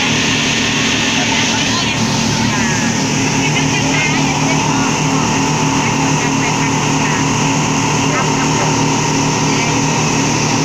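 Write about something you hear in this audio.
A boat engine drones steadily at speed.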